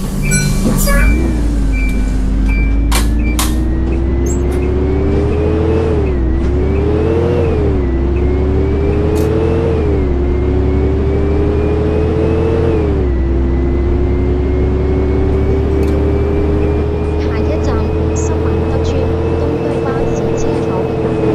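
A bus engine revs up repeatedly, dropping in pitch at each gear change.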